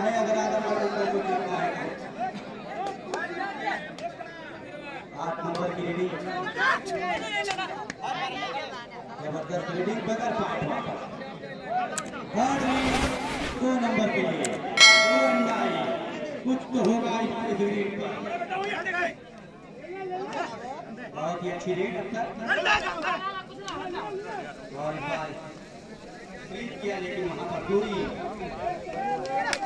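A large outdoor crowd cheers and shouts.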